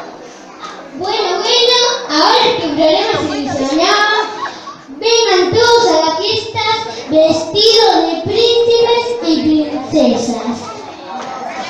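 A young boy speaks loudly in an echoing hall.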